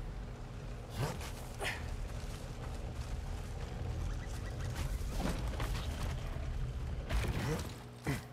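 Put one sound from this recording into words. Footsteps thud on rock and grass.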